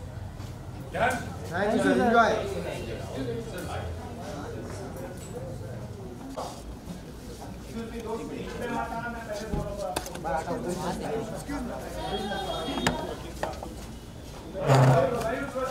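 Men talk over one another nearby.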